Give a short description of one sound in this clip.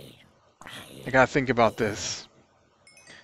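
A zombie groans in pain.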